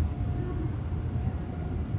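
An electronic meter gives off a faint steady whine.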